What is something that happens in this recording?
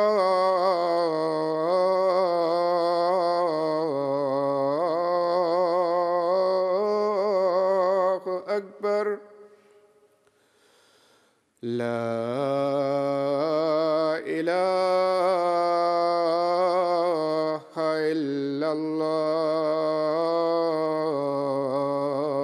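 A man chants a long, melodic call in a loud, sustained voice, echoing in a large hall.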